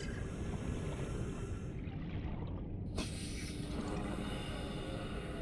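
Water rumbles in a deep, muffled underwater hush.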